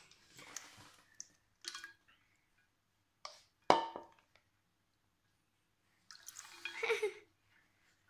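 Water pours and splashes into a bowl.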